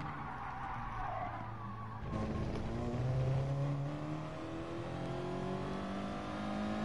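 A racing car engine roars and climbs in pitch as it accelerates.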